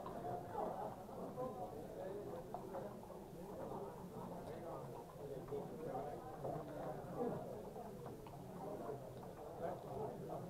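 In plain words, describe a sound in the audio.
A hand slides and clicks backgammon checkers on a board.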